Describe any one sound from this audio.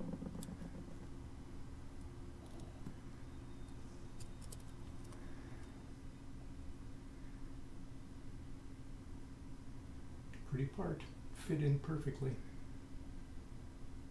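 Small plastic and metal parts click softly as they are fitted together by hand.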